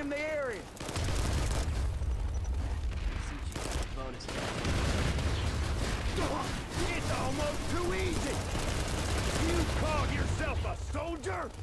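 A gun fires in rapid bursts, with heavy booming blasts.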